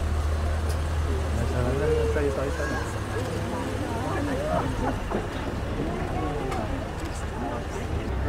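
Men and women talk nearby outdoors.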